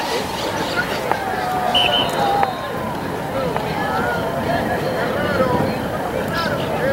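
A crowd murmurs and calls out outdoors in the distance.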